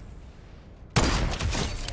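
A sniper rifle fires with a loud crack.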